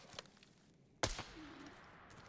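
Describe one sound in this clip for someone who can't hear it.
A rifle shot cracks sharply.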